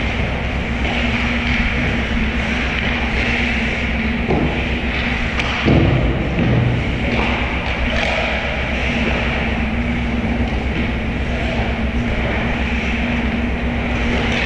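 Ice skates scrape across an ice rink in a large echoing hall.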